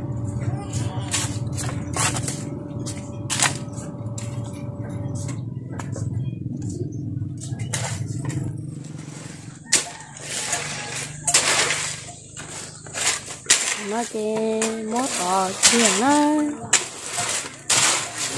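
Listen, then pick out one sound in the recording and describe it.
A shovel scrapes and scoops through wet sand and gravel.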